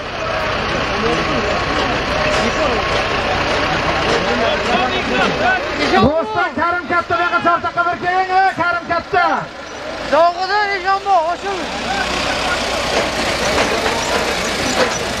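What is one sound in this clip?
A large crowd murmurs and shouts outdoors.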